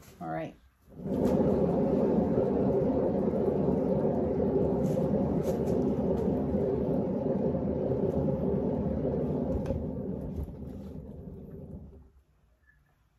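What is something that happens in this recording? A paint spinner whirs steadily as it spins a canvas.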